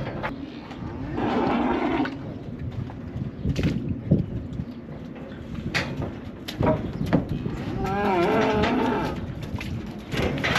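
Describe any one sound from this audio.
A man talks nearby outdoors.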